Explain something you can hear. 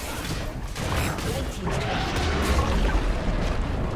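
A tower crumbles with a heavy crash.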